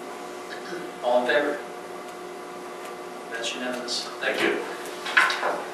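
A man speaks through a microphone in a large echoing room.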